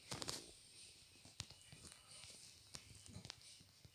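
Keyboard keys click softly during typing.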